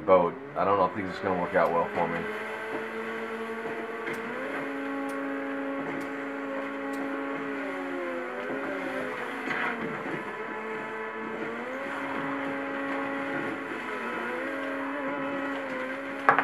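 A motorboat engine drones steadily, its pitch rising and falling as it speeds.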